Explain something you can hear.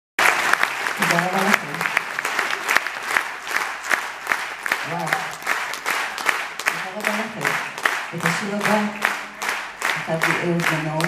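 A woman sings into a microphone over loudspeakers in a large hall.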